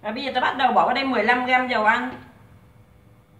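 A woman speaks close by with animation.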